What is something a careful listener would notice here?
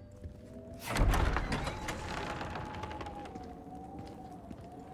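Heavy wooden doors creak open.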